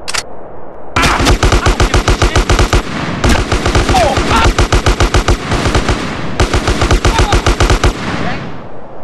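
An automatic gun fires in rapid bursts.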